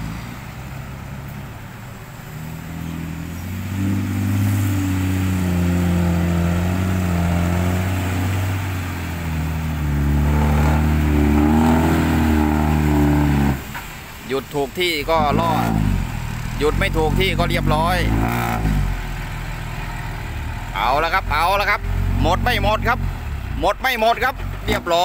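A truck engine rumbles and revs nearby.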